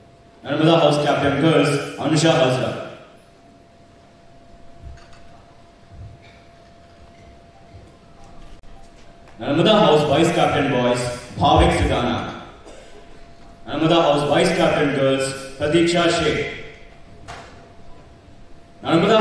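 A woman announces through a loudspeaker in a large echoing hall.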